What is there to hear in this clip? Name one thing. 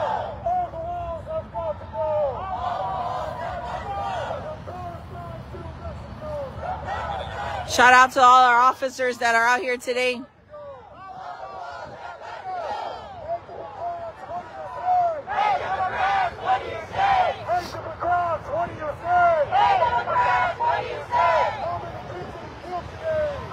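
A crowd of protesters chants loudly outdoors.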